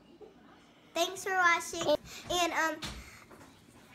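A young girl speaks close by, with animation.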